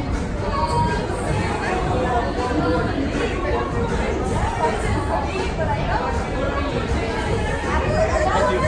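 A crowd of people chatters in a large echoing space.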